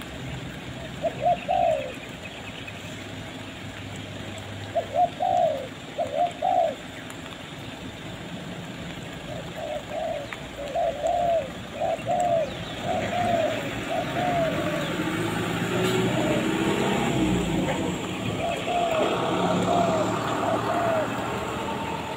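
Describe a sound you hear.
A bird calls repeatedly nearby.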